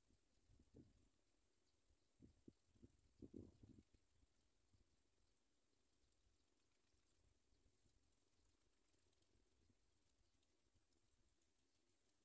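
Baby birds cheep faintly in a nest.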